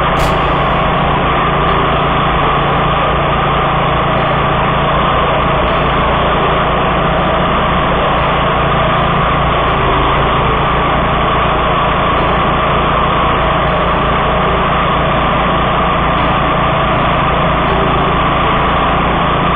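Tall grass swishes and crunches under a mower's blades.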